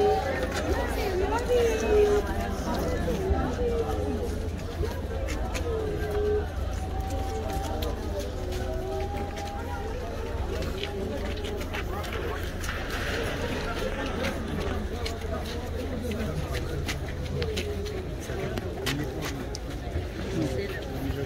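A crowd of men murmurs and talks outdoors.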